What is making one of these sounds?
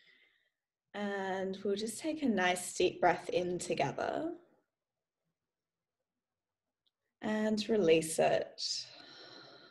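A young woman speaks calmly and softly through a microphone.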